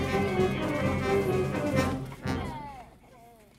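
A band plays outdoors.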